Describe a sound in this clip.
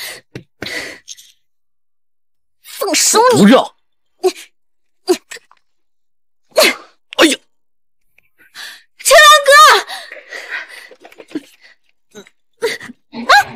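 A young woman speaks angrily and close by.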